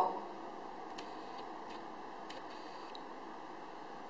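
Playing cards flick and tap softly on a table.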